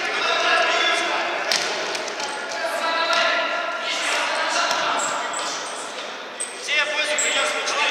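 A ball thumps off players' feet.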